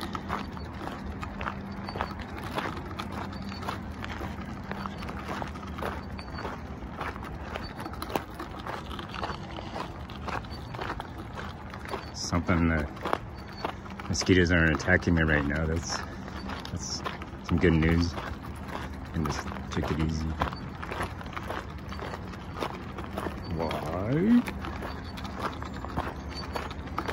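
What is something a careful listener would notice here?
Footsteps crunch steadily on gravel outdoors.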